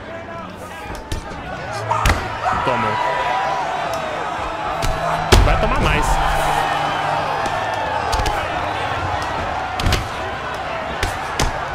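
Punches land with dull thuds.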